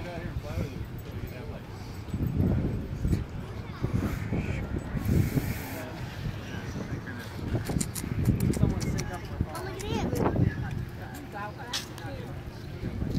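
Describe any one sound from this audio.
Wind gusts roughly against the microphone outdoors.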